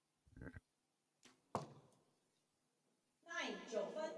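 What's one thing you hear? An arrow thuds into a target.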